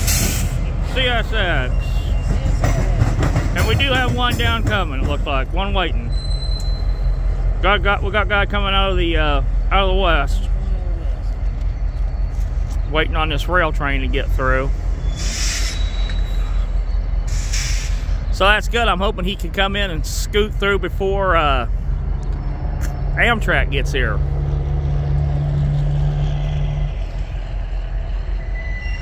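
A diesel locomotive rumbles steadily as it slowly pulls away.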